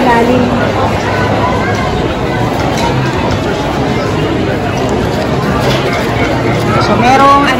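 A straw stirs ice in a plastic cup.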